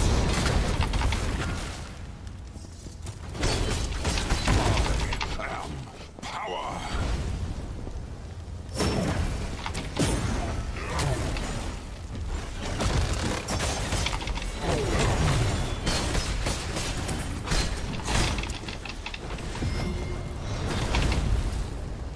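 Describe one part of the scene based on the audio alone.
Game combat sounds of blows and blasts crash repeatedly.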